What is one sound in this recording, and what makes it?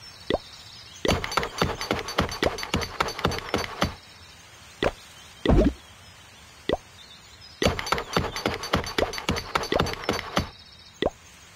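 Quick game clicks tick rapidly in bursts.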